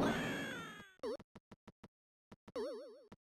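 A retro video game tone warbles up and down.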